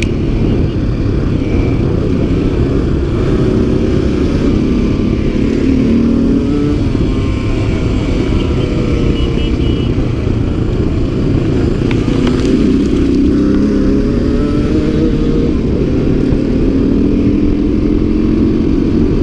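A dirt bike engine roars up close, rising and falling in pitch as it revs.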